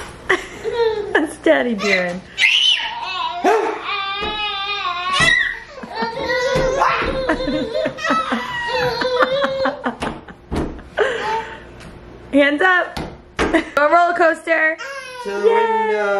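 Two babies laugh and squeal with delight close by.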